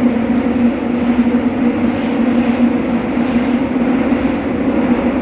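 A train car rumbles and hums steadily as it rides along the track.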